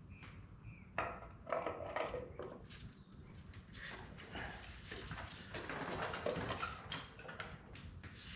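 A spoked wheel knocks and rattles as it is turned and handled.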